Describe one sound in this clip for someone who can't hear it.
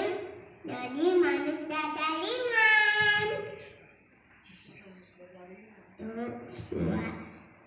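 A young boy sings loudly into a microphone.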